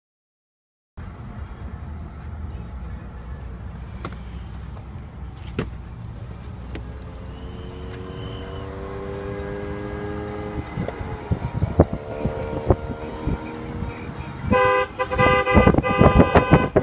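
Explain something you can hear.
A car engine rumbles low and steady as the car drives along a road.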